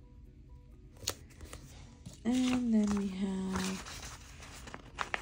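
Stiff paper rustles and crinkles as it is handled.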